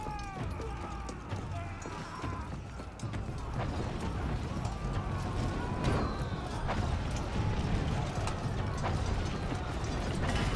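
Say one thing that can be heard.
Armoured footsteps run quickly over stone and wooden boards.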